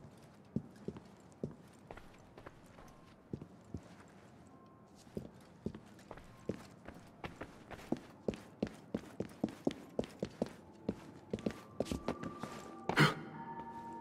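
Footsteps tap quickly on a stone floor.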